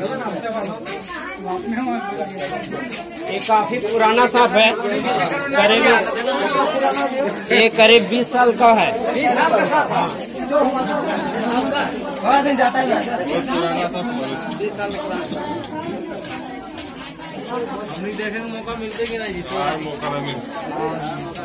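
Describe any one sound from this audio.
A crowd of men talk over one another close by.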